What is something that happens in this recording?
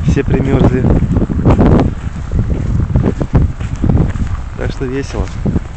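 Footsteps crunch on packed snow close by.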